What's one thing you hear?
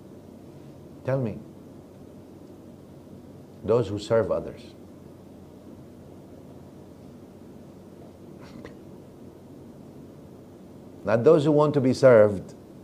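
A middle-aged man speaks calmly in short phrases with long pauses, close to a microphone.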